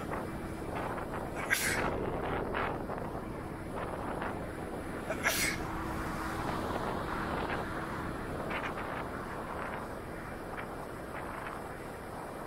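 Wind rushes past the rider, close and constant.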